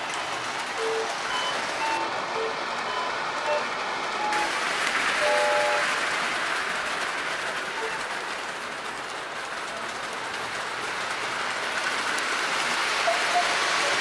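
A model train rumbles and clatters along metal tracks.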